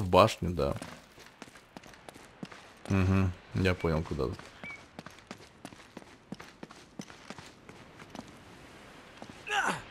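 Footsteps scuff over stone.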